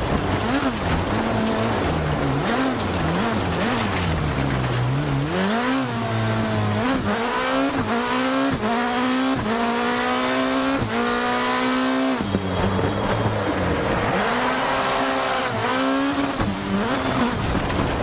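A racing car engine revs up and down through the gears.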